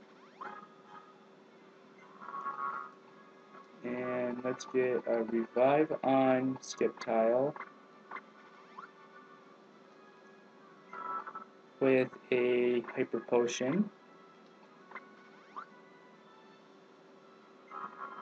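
Short electronic game chimes sound now and then.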